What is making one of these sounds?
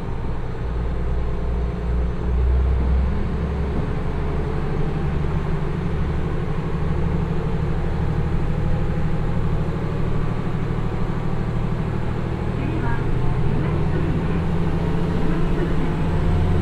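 Train wheels rumble and clack on the rails, getting faster.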